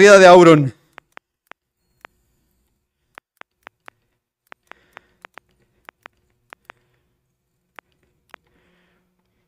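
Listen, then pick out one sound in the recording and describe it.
Keyboard keys click in quick, uneven taps.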